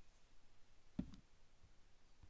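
A phone is picked up with a soft knock.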